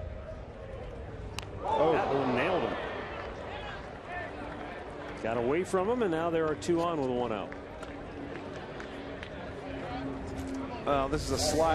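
A crowd murmurs in an outdoor stadium.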